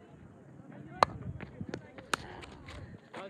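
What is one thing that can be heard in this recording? A cricket bat sharply strikes a ball.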